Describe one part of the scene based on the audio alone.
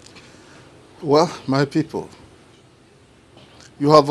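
An elderly man speaks in a deep voice, close by.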